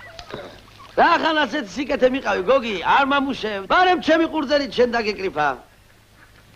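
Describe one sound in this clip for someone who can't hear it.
An elderly man speaks loudly and excitedly close by.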